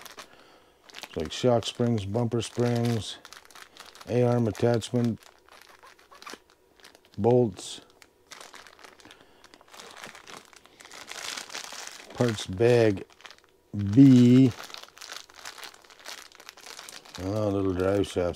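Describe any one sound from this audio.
Plastic bags crinkle and rustle as they are handled.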